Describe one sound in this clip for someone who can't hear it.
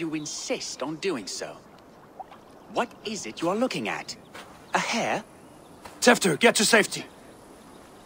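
A man speaks calmly in a deep voice.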